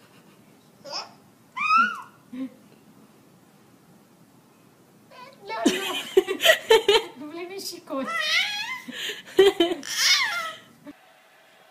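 A baby squeals and laughs with delight close by.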